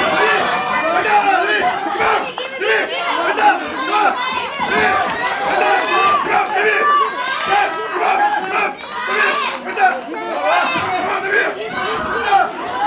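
A crowd of spectators shouts and cheers loudly.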